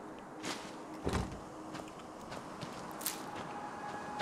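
A plant rustles as it is picked.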